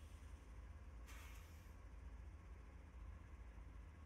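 A diesel train rumbles past on the rails.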